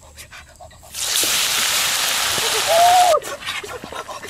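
Meat sizzles loudly in hot oil in a pan.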